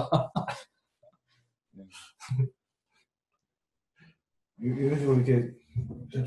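Men talk and laugh nearby.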